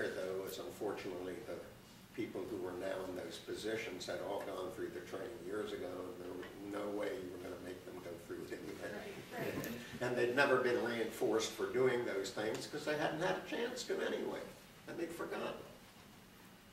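A middle-aged man speaks with animation into a microphone in a large hall.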